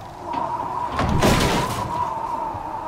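A wooden door bangs loudly.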